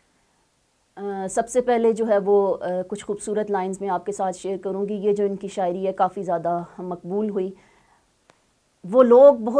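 A woman speaks steadily and clearly into a close microphone.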